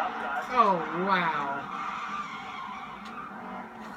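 Tyres screech as a race car spins out.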